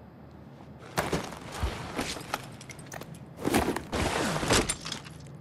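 Hands and boots scrape and shuffle against rough rock.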